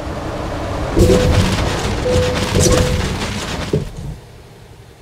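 A truck crashes and scrapes over rocks with loud bangs.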